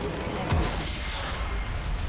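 A game's battle effects crackle and boom.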